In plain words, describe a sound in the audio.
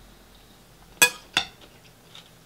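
A fork clinks against a ceramic bowl.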